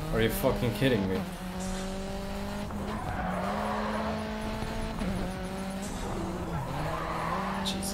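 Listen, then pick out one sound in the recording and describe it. A racing car engine roars steadily and shifts pitch through gear changes.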